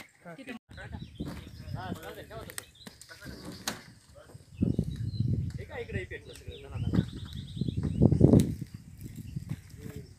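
A fire roars and crackles.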